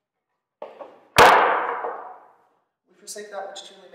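Wooden boards clatter against each other.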